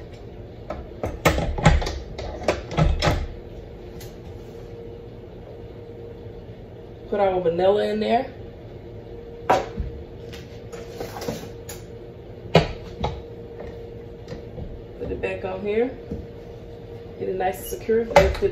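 Glass and metal dishes clink and knock against a mixing bowl.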